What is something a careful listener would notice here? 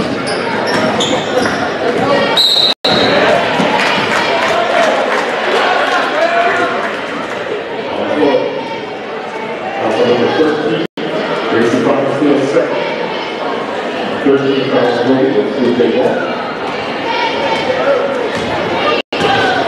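A large crowd murmurs and chatters in an echoing gym.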